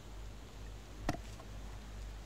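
A glass bottle clinks against a metal pot.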